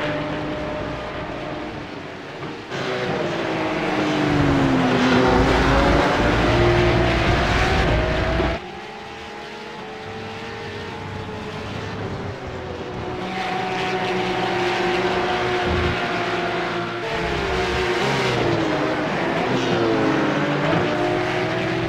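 Racing car engines roar and whine, rising and falling as they shift gears.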